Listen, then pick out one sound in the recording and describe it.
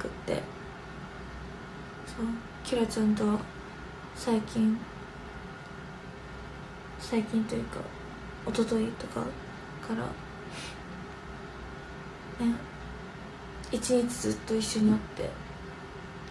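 A young woman speaks softly and calmly, close to a microphone, in short bursts.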